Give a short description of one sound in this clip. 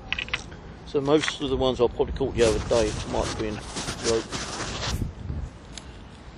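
A hand rubs and knocks right against the microphone.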